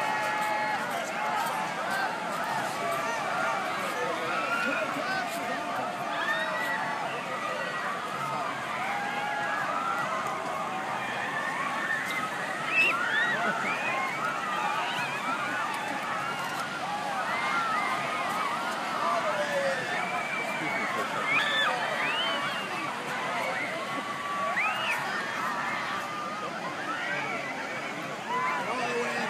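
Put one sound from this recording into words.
A large crowd chatters and shouts outdoors.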